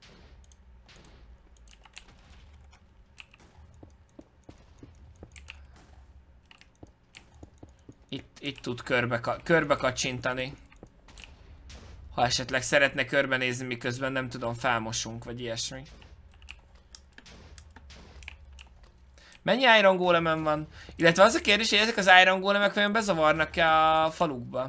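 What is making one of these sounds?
Soft clicking taps come from a game's blocks being broken.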